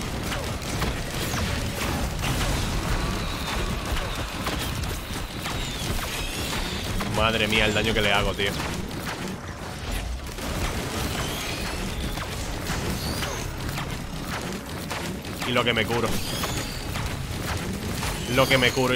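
Rapid blasts and impacts crackle.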